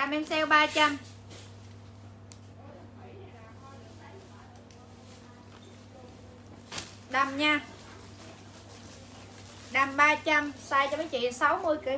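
Fabric rustles as clothing is handled.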